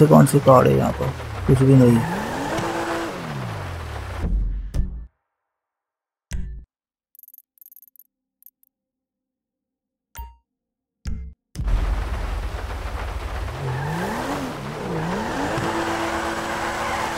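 A car engine revs up and down.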